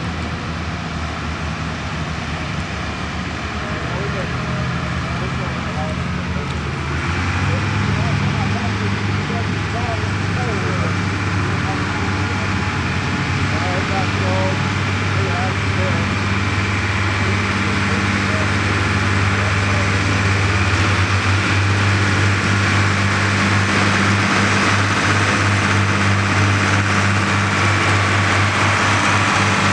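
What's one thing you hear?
A tractor engine roars loudly, growing louder as it pulls a heavy sled.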